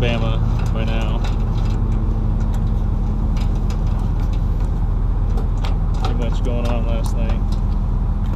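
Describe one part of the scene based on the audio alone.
A man speaks calmly outdoors, close by.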